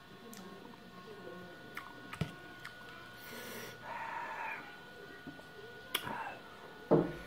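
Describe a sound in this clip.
A young man slurps and chews noodles.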